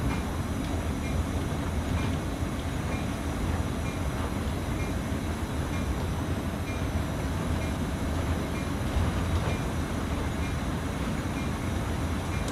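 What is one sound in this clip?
Train wheels click over rail joints at an even pace.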